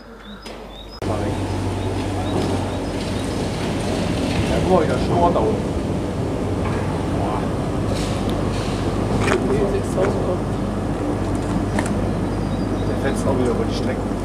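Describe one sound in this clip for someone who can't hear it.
A tram rumbles slowly along rails.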